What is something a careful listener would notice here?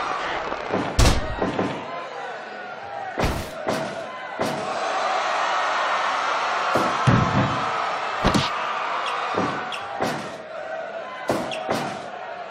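Bodies thud heavily onto a wrestling ring mat.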